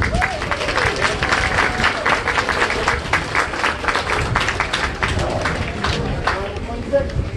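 A brass band plays a lively tune.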